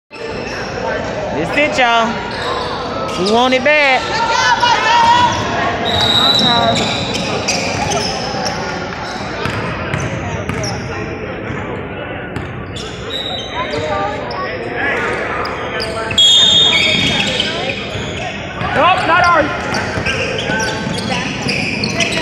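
Young players and spectators shout and call out in a large echoing gym.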